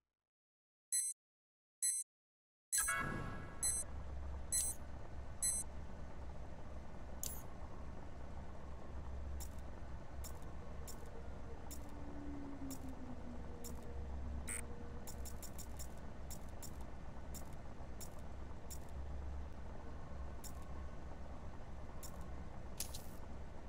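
Menu selection clicks tick repeatedly in quick, short bursts.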